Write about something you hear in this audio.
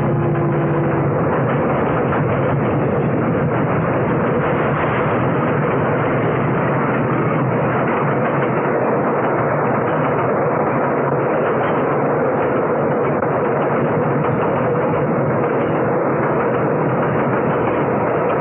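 A train rumbles past close by.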